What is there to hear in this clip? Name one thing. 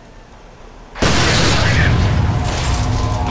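A gun fires in a loud, continuous burst.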